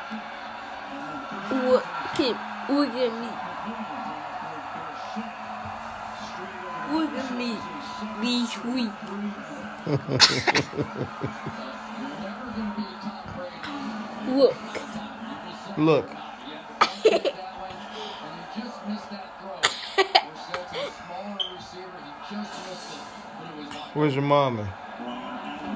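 A young boy laughs close to the microphone.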